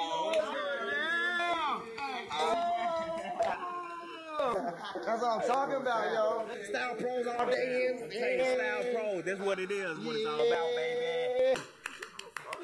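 Young men shout and sing excitedly close by.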